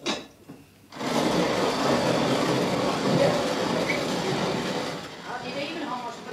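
A hand-cranked coffee grinder rattles and grinds steadily.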